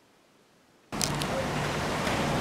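Water splashes gently as a child swims in a pool.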